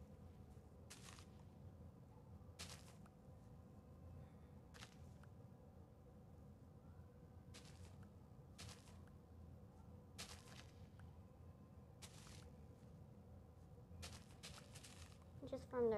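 Short rustling pops sound as crops are picked in a video game.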